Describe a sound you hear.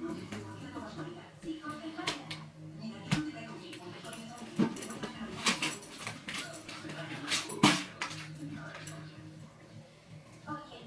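A middle-aged woman talks, close by.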